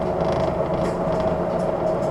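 A bus drives past close by.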